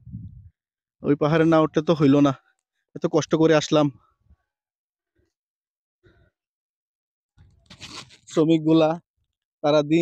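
A man talks with animation close to the microphone, in short bursts with pauses.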